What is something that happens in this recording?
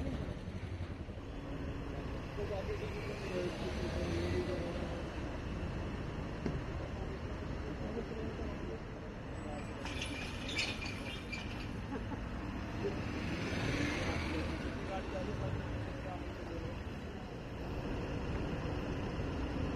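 Car engines hum and idle in slow traffic.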